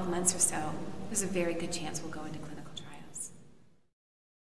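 A woman speaks calmly and close to the microphone.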